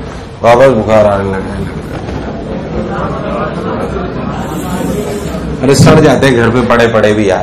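A man speaks calmly into a microphone, lecturing.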